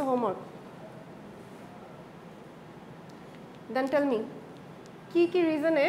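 A young woman speaks calmly in short bursts with pauses.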